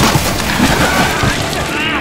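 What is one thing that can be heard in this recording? Water splashes loudly.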